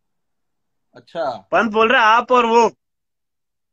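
Another young man answers with animation over an online call.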